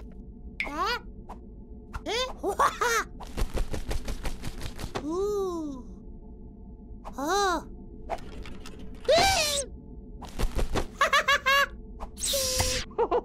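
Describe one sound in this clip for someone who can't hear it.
A small chick chirps and squeaks in short, high bursts.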